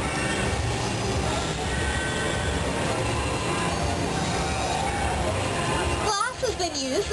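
A glass furnace roars steadily.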